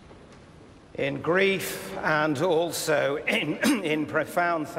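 An elderly man speaks slowly and solemnly into a microphone in a large echoing hall.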